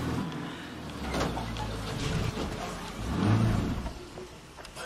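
A car engine rumbles as it drives slowly.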